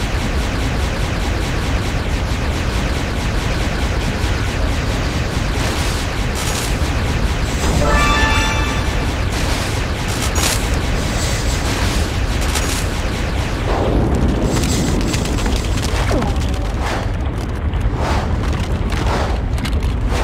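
Laser guns fire rapid zapping shots.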